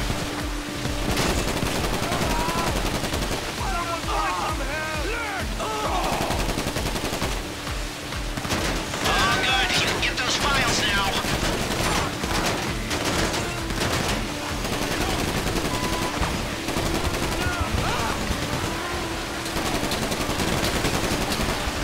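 A heavy truck engine rumbles.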